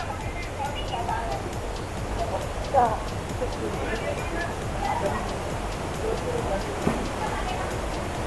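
Water splashes around people wading.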